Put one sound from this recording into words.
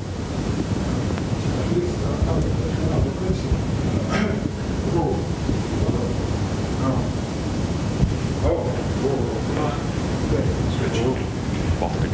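A man asks a question from farther off, faint and muffled.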